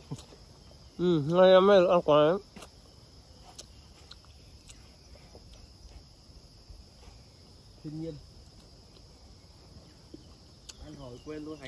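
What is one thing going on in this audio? A young man blows short, loud, warbling calls through a leaf held to his lips.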